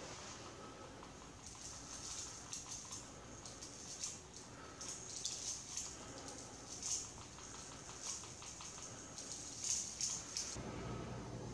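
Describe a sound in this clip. Small beads pour and rattle into a metal tube.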